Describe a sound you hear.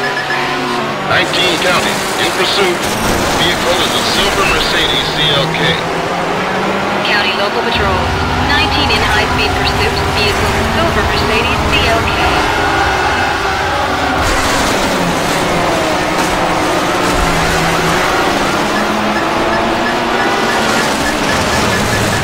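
A racing car engine roars and revs steadily.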